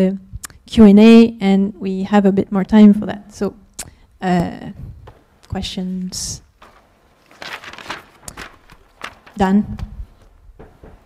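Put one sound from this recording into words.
A woman speaks through a microphone in a large hall, with a slight echo.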